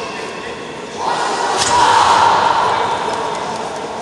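Young women shout sharply together.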